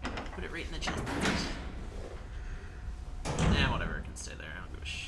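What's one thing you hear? A heavy metal door creaks open.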